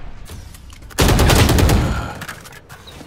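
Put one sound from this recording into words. A burst of rapid gunfire rings out loudly.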